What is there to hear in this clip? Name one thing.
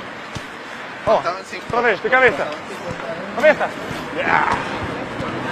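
A young man laughs and calls out loudly nearby.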